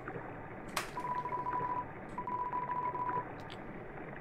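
A steady electronic beep sounds as game text types out.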